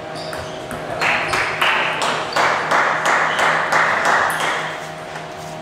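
A crowd applauds in an echoing hall.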